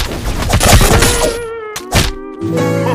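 A short tuneful jingle plays.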